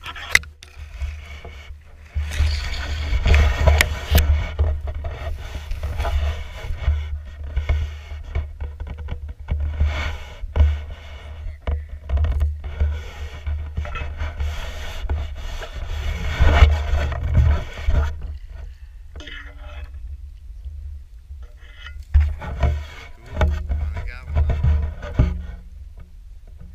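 Dry reeds rustle and crackle close by as someone pushes through them.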